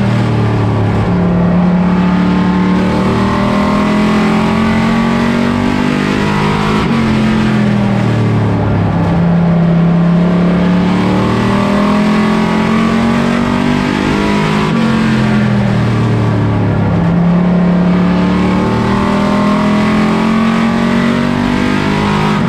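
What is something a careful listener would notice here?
A race car engine roars loudly from inside the cockpit, its pitch rising and falling with each lap.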